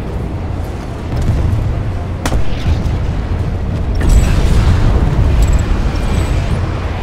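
An aircraft engine roars steadily.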